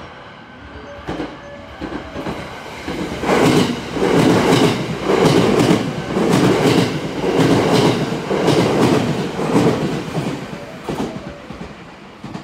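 A train rushes past loudly, its wheels clattering rhythmically over the rail joints.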